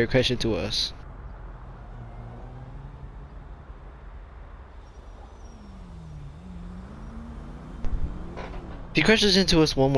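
A sports car engine hums and rises in pitch.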